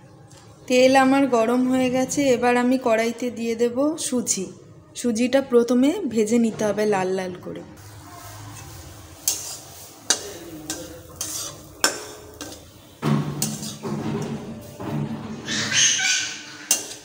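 Oil sizzles softly in a hot pan.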